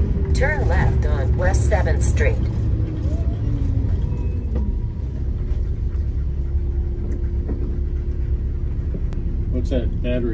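A vehicle's engine rumbles steadily while driving.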